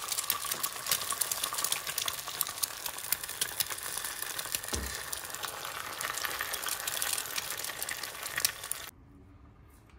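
Eggs sizzle and crackle loudly in a hot frying pan.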